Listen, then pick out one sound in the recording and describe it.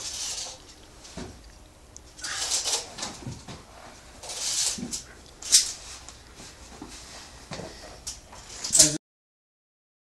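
Climbing gear clinks and scrapes against rock as a climber moves up.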